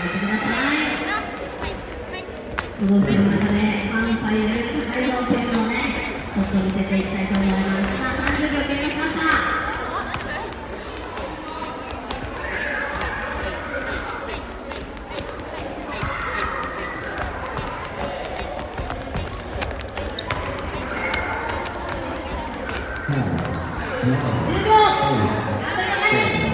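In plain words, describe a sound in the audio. A long rope slaps rhythmically on a wooden floor.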